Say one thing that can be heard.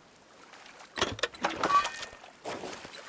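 A metal case clicks and clanks as it is searched.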